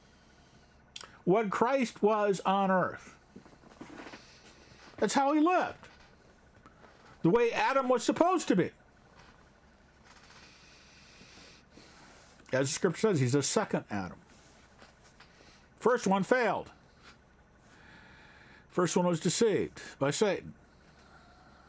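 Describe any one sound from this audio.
An elderly man speaks calmly and close to a microphone, in short bursts with pauses.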